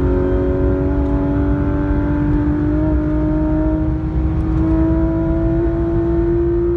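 A car engine roars loudly at high revs, its pitch slowly rising as the car speeds up.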